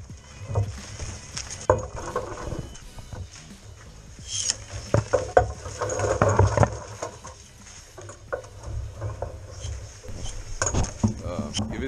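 Pruning shears snip through small branches.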